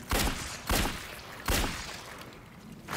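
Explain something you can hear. Gunshots bang loudly in quick succession.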